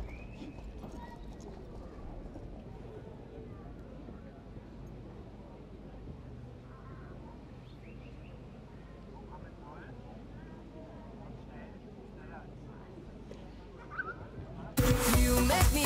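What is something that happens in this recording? A horse canters on grass with soft, rhythmic hoof thuds.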